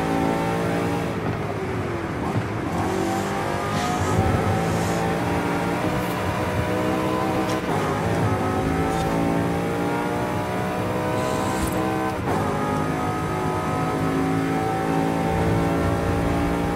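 A racing car engine roars loudly, rising in pitch and dropping with each gear change.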